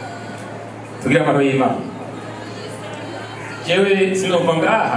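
An elderly man speaks into a microphone over loudspeakers.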